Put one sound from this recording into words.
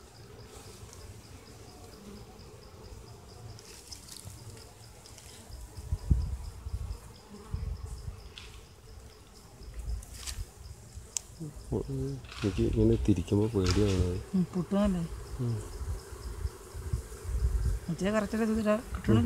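Bees buzz softly.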